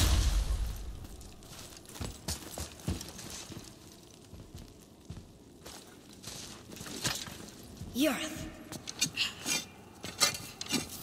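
Heavy footsteps thud on a stone floor.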